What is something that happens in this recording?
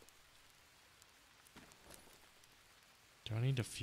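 A backpack is unzipped and opened with a soft rustle.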